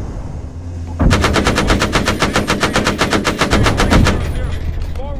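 A machine gun fires a rapid burst.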